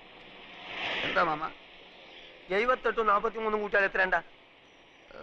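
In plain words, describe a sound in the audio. A man speaks loudly and with emphasis, close by.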